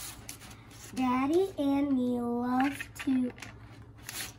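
A young child reads aloud close by in a high, sing-song voice.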